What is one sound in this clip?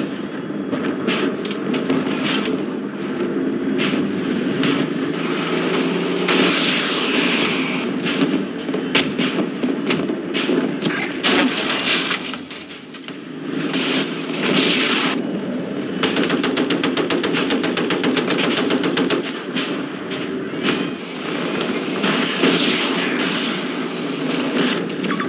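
A tank engine rumbles and its tracks clatter steadily.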